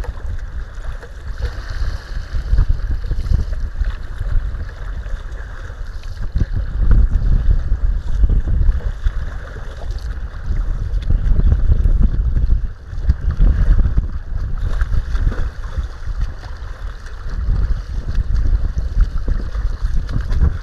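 Choppy waves slap against a kayak's hull.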